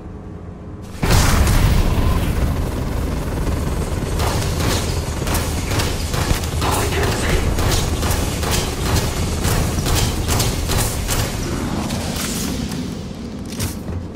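A heavy gun fires in loud, rapid bursts.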